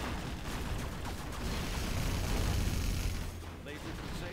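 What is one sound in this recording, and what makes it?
Explosions rumble and boom.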